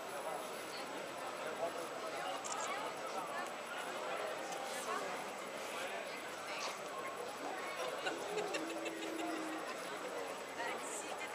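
A crowd of people chatters outdoors at night.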